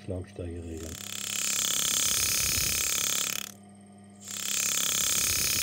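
Compressed air hisses loudly through a pneumatic clamp.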